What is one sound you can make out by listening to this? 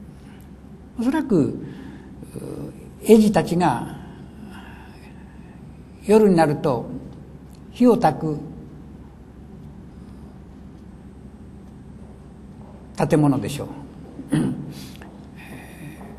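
An elderly man reads aloud slowly and calmly, close to a microphone, with long pauses.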